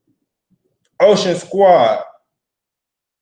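A young man speaks a few words briefly, close by.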